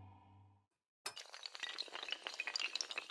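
Dominoes clatter rapidly as they topple one after another.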